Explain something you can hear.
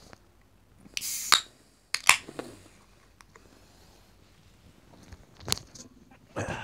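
A can clinks against a glass.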